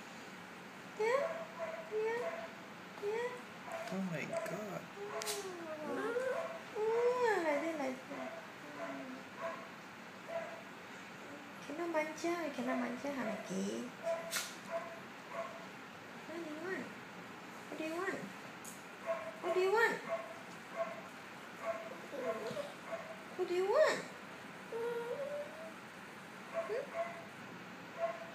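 A small dog whines and yelps in short, high bursts.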